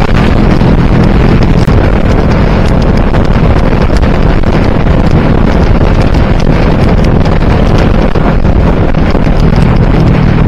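Wind buffets loudly and roughly, as if over a rider's helmet.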